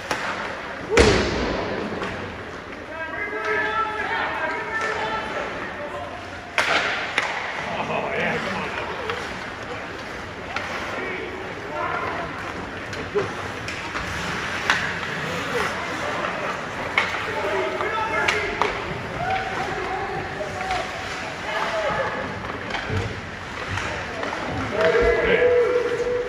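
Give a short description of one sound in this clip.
Hockey sticks clack sharply against a puck, echoing in a large hall.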